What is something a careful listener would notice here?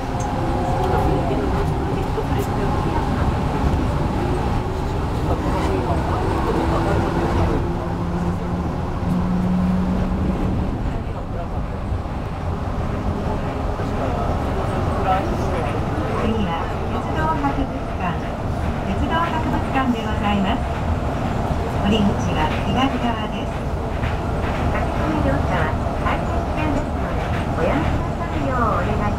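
A train hums and rumbles steadily along an elevated track.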